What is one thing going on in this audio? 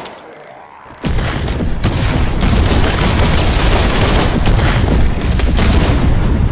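Explosions roar loudly and rumble on.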